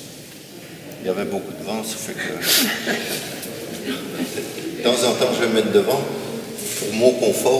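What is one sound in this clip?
An older man speaks calmly, close by.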